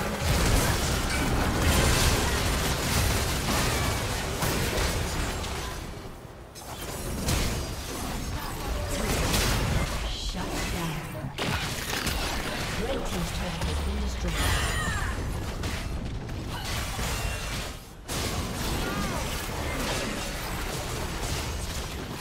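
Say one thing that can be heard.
Game spells crackle, whoosh and blast in a fast fight.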